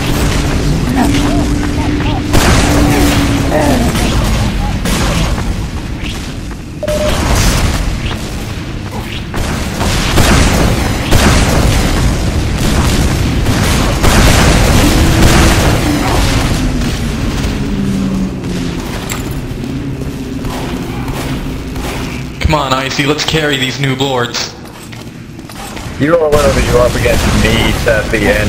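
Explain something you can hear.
Rockets whoosh as they are fired.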